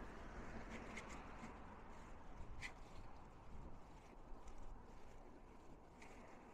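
Waves wash against rocks below a sea wall.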